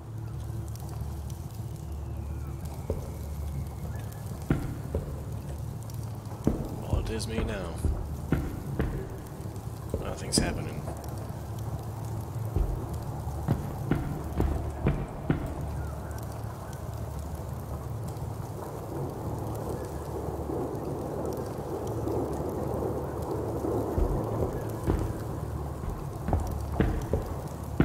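A torch flame crackles and roars softly close by.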